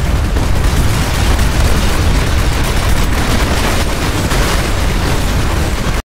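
A heavy armoured vehicle's engine rumbles steadily as it drives.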